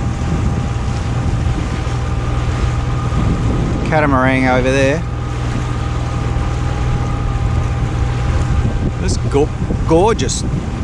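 Water splashes and laps against a boat's hull.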